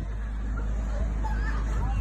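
An acoustic guitar strums through loudspeakers.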